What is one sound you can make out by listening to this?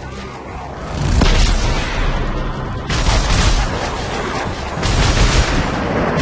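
A gun fires bursts of energy shots with a crackling blast.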